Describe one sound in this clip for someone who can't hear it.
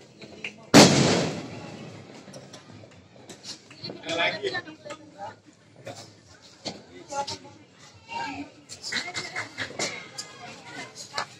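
Fireworks crackle and pop in the distance.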